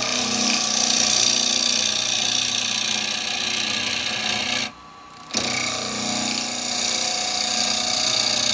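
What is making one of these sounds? A wood lathe spins with a steady whirring hum.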